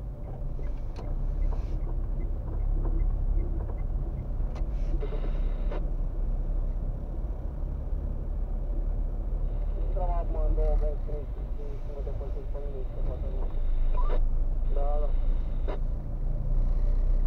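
A car engine rumbles low and steadily from inside the car.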